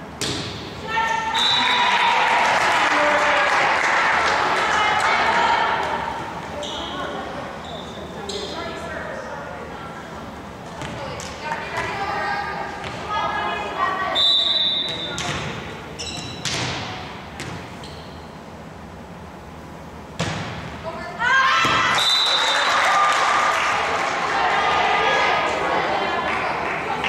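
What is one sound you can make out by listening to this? A crowd of girls cheers and shouts in a large echoing gym.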